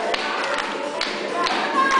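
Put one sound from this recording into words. A boy claps his hands.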